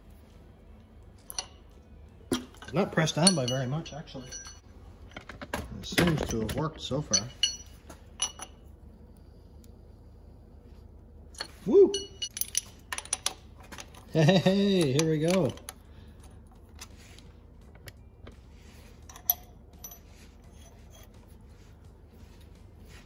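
Metal tools clink and tap against metal parts.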